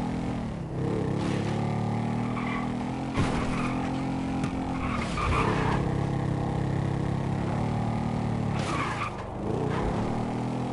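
A quad bike engine revs steadily, dropping and rising in pitch as it shifts gears.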